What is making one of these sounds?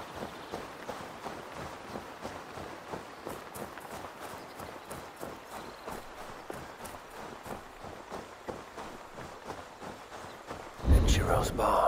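Footsteps crunch steadily over grass and dirt.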